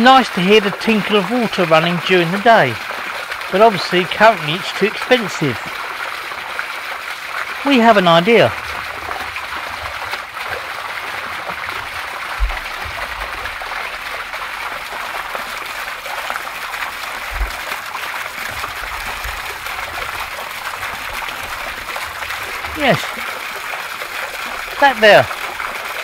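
Fountain water splashes steadily into a pond outdoors.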